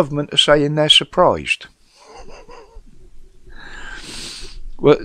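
An older man speaks animatedly into a close microphone.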